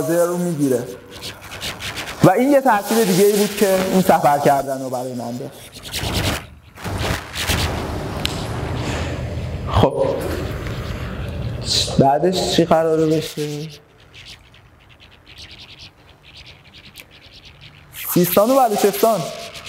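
A man speaks to an audience through a microphone in a large hall, pausing between phrases.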